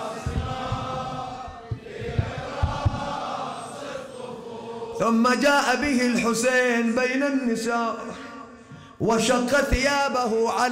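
A man chants in a loud, drawn-out voice through a microphone in an echoing hall.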